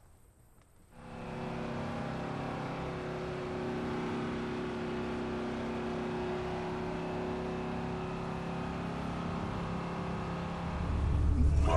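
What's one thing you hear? A bus engine hums as tyres roll along a road.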